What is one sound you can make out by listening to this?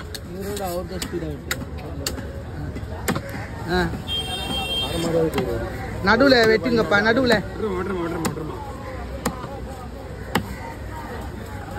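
A knife chops through fish on a wooden block with sharp knocks.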